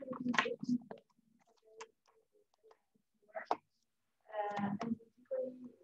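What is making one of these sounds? Paper rustles as a young man handles a sheet.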